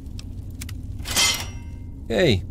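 A metal trap clicks as it is disarmed.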